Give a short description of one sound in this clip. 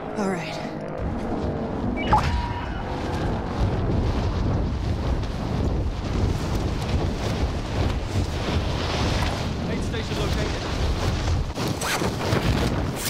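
Wind rushes loudly and steadily, as in a fast freefall.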